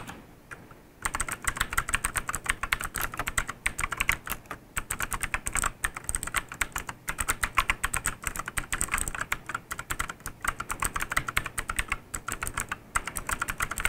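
Fingers type quickly on a mechanical keyboard, its keys clacking loudly.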